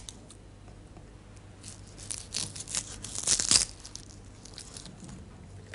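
A blade scrapes and crackles against brittle flakes on a stone.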